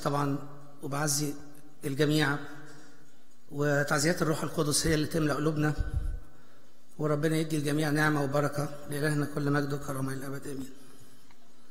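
An elderly man speaks slowly and solemnly through a microphone.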